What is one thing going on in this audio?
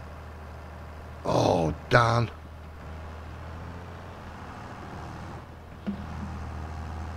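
A tractor engine hums steadily at a low idle.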